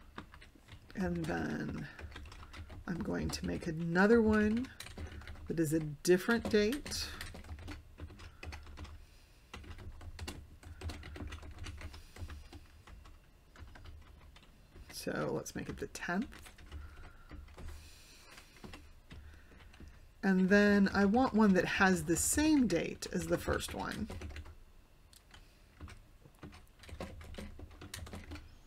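Keys click rapidly on a computer keyboard.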